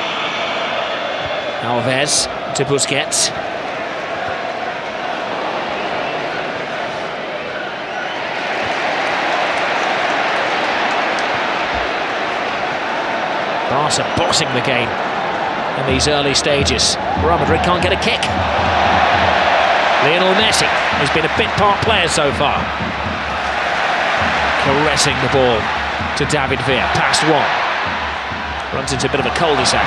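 A large stadium crowd roars and chants steadily in the open air.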